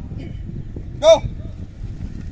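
A whistle gives one short, sharp blast.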